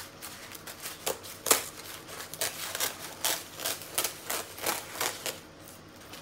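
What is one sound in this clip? Scissors snip through stiff, crackly material.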